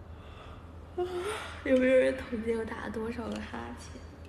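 A young woman laughs and talks close by, heard through a phone microphone.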